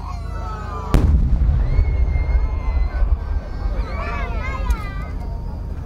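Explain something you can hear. A large aerial firework shell bursts with a deep boom that rolls away in echoes.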